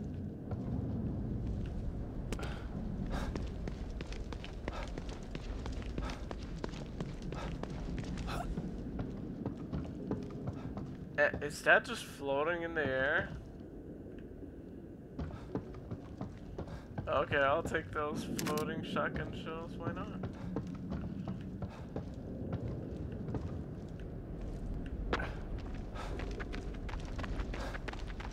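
Footsteps crunch through grass and on wooden floorboards.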